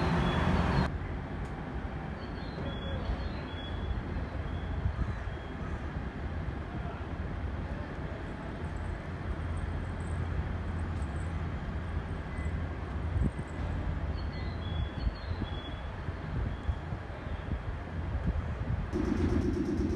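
A train rumbles slowly along the tracks.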